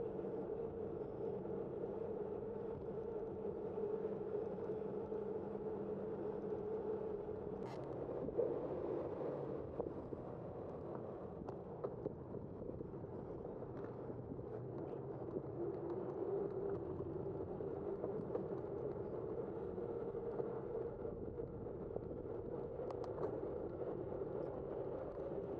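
A car engine hums steadily at low speed.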